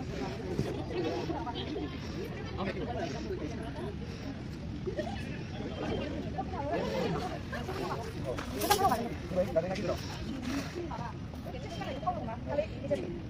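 Young men and women chat casually nearby outdoors.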